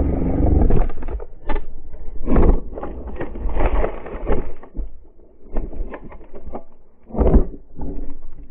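A dirt bike crashes into loose dirt with heavy thuds.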